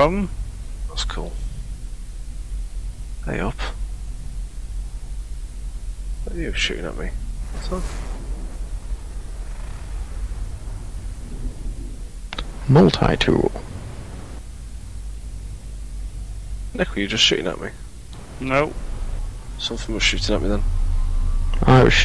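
A young woman talks into a close microphone in short bursts.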